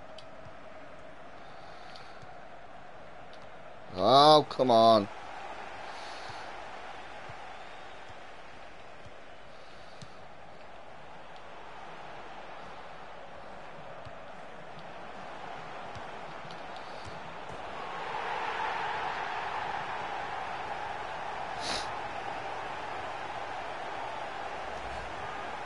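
A stadium crowd murmurs steadily, then swells into a loud cheer.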